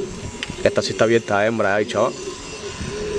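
A pigeon coos softly.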